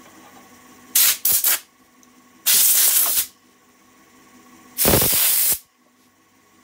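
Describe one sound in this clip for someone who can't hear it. A tool scrapes loudly against spinning wood in short bursts.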